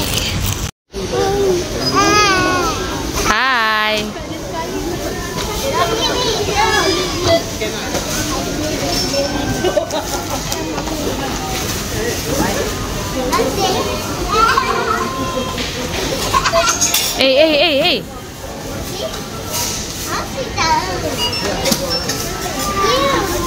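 A young child babbles and squeals nearby.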